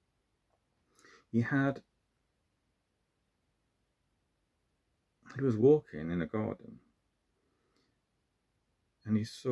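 A man speaks calmly and close by, in short phrases with pauses.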